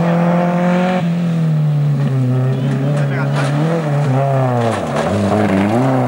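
Gravel crunches and sprays under a car's tyres.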